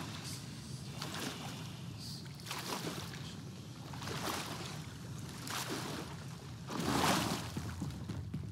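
Water splashes and sloshes with each swimming stroke.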